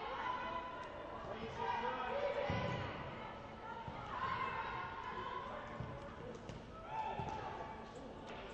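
Young women shout to each other in a large echoing hall.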